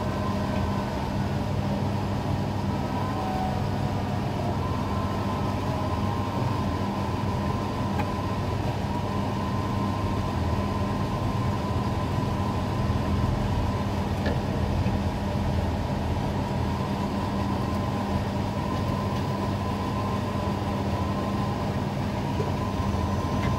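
A crane's motor hums steadily up close.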